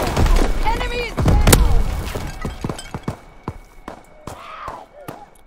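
Rifle shots crack in quick succession.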